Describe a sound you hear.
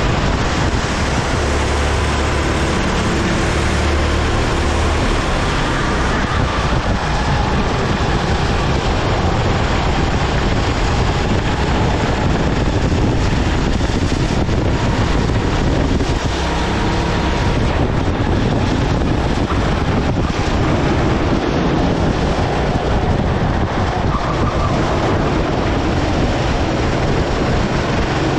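Wind rushes past a microphone on a moving kart.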